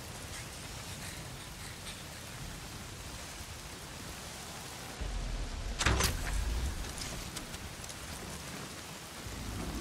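Footsteps crunch over leaves and dirt.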